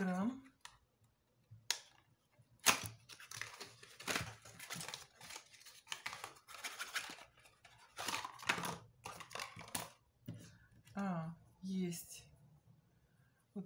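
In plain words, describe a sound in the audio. Cardboard rustles and scrapes as a small box is opened by hand.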